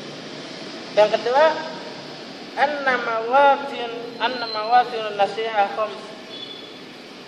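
A young man speaks calmly nearby in a slightly echoing room.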